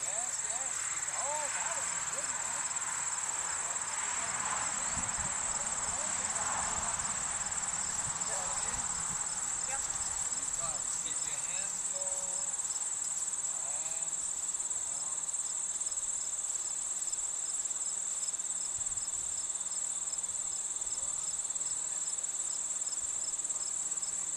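A horse's hooves thud softly on grass.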